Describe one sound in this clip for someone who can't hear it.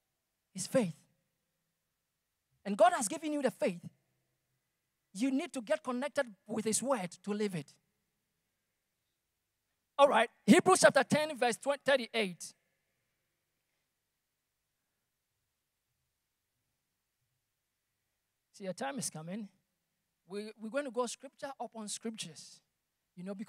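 A young man speaks with animation into a microphone, heard through loudspeakers in an echoing hall, with long pauses.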